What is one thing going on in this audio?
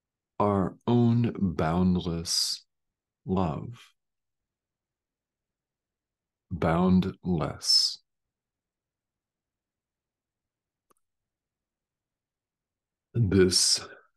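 A middle-aged man speaks calmly into a microphone in short phrases with long pauses, as if on an online call.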